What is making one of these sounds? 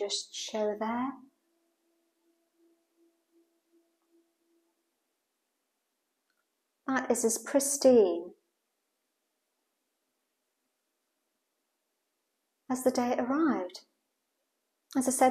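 An elderly woman speaks calmly close by, in short bursts with pauses.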